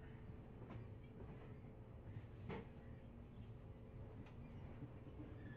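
A train rumbles steadily along the tracks, with wheels clacking over rail joints.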